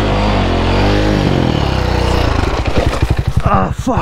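A motorbike crashes down onto dry leaves.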